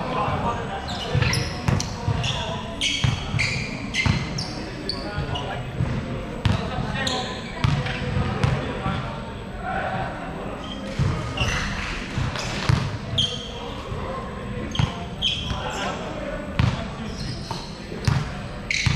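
Young men talk and call out across a large echoing hall.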